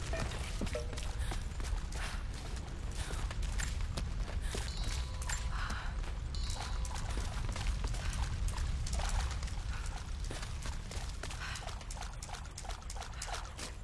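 Footsteps crunch on stone as a woman runs.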